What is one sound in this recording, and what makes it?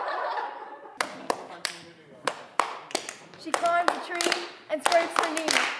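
A group of young women clap their hands in rhythm.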